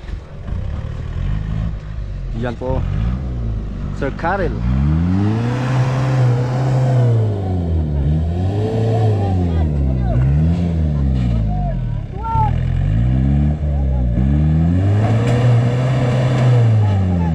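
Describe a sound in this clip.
An off-road vehicle's engine revs hard and strains as it climbs a dirt slope.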